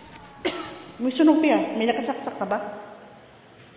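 A middle-aged woman speaks close to a phone microphone.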